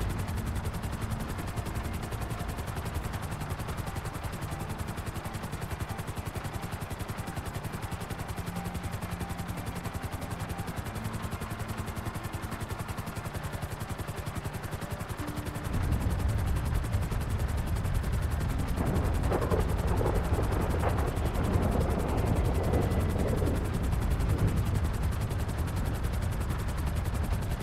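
A helicopter's rotor thuds steadily overhead.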